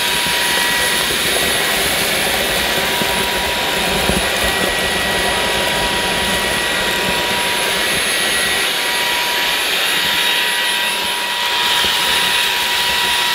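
A cordless vacuum cleaner hums and whines steadily.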